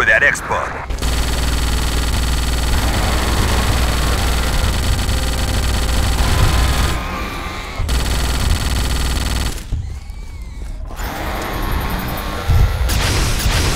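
Giant insects screech and shriek.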